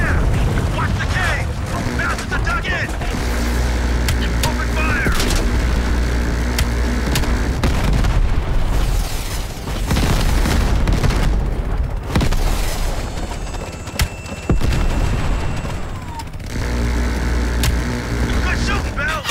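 A helicopter's rotor thumps loudly and steadily.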